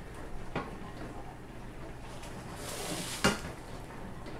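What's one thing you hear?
A spatula scrapes against a frying pan.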